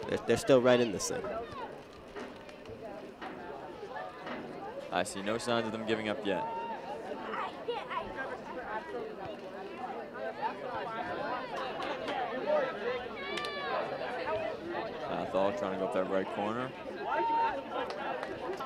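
A crowd of spectators cheers and yells.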